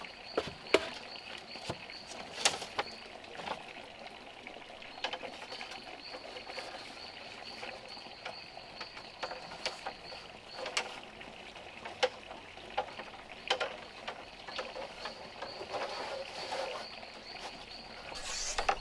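Bamboo strips rustle and scrape as they are handled.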